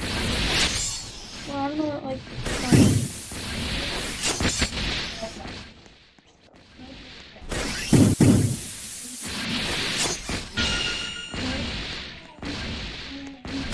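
A blade slashes through flesh with a wet thud.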